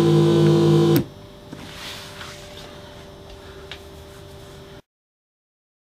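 A synthesizer hums faintly with a quiet steady tone.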